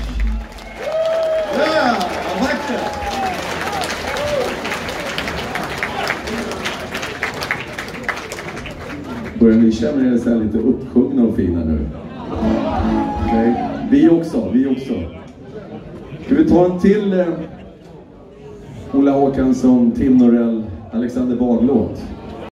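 A band plays live music through loud speakers.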